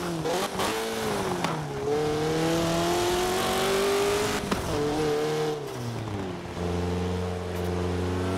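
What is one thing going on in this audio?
A sports car engine revs up and down through gear changes.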